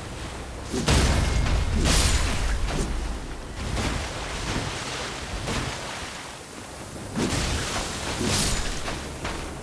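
A sword swings and strikes with heavy thuds.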